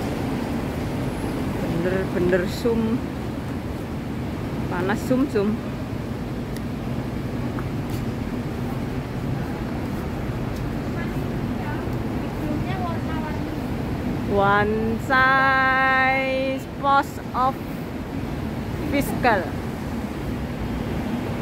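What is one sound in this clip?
City traffic rumbles steadily nearby outdoors.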